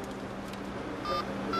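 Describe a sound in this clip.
A phone beeps as buttons are pressed.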